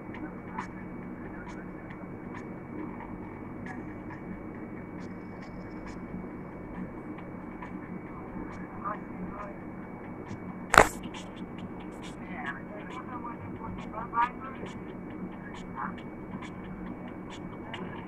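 A young man speaks quietly close to a phone microphone.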